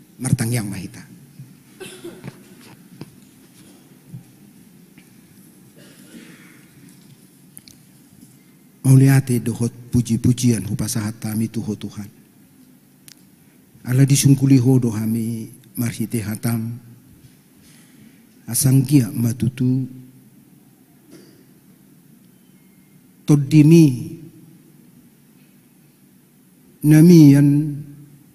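A middle-aged man speaks slowly and calmly into a microphone, in bursts with pauses, in a reverberant hall.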